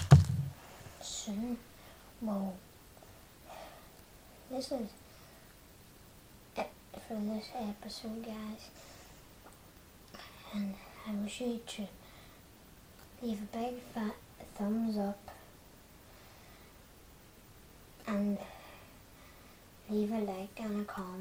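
A boy talks calmly and close by, with pauses.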